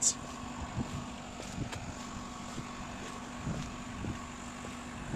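A truck engine idles nearby with a steady low hum.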